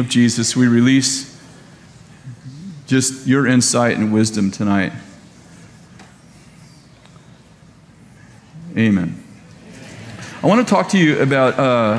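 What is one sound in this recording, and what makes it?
A middle-aged man speaks calmly into a headset microphone, pausing between phrases.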